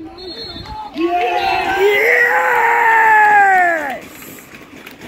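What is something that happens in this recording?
A crowd of spectators cheers loudly and then dies down.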